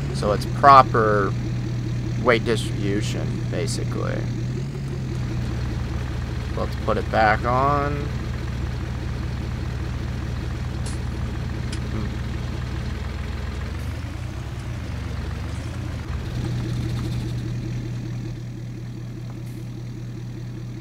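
A pickup truck's engine hums steadily at low speed.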